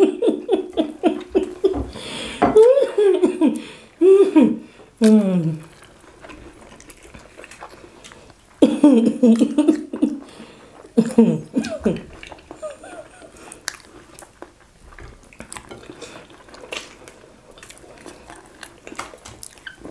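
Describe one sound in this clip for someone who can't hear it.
A man and a woman chew and smack their lips loudly close to a microphone.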